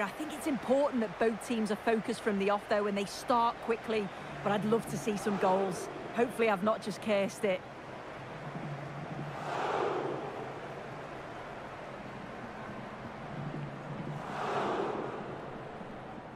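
A large stadium crowd cheers and roars in a big open space.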